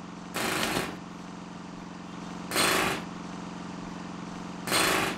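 A small generator engine runs with a steady hum.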